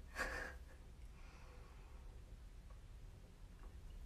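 A young woman sips from a bottle.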